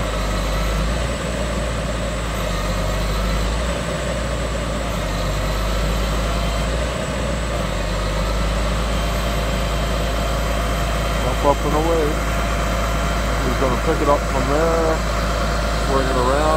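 A truck engine idles with a steady, low rumble.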